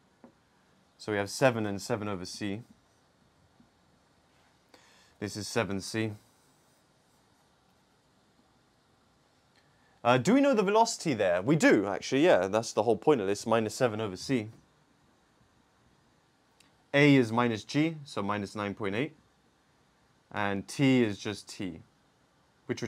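A man explains calmly and clearly in short bursts, close by.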